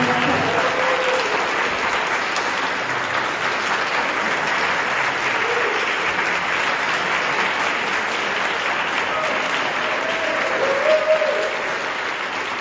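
People in a crowd cheer and whoop now and then.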